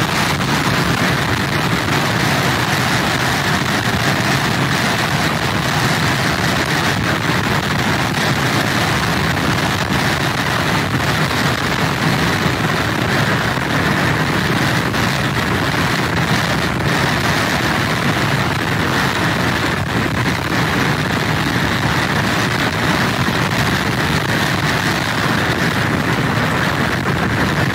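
Strong wind roars steadily outdoors.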